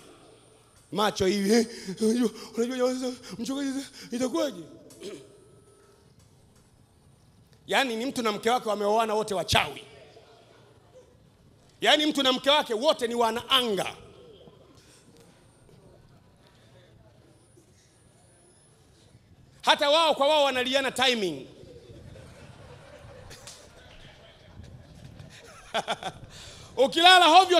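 A man preaches forcefully into a microphone, in bursts with pauses, heard through loudspeakers.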